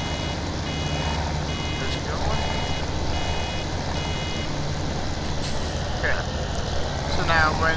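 A baler whirs and rattles as it gathers straw.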